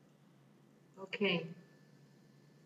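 A computer error alert chimes once.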